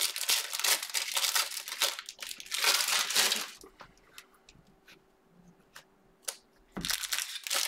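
Foil card packs crinkle and rustle in hands close by.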